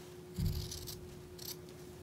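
Scissors snip near the end.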